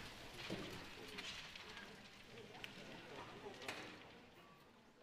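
An audience applauds in a large hall, then the applause dies away.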